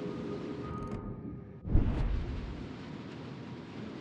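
A ship's guns fire with a loud, deep boom.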